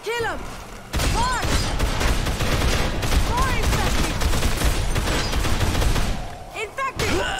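Rapid gunfire rattles loudly and echoes.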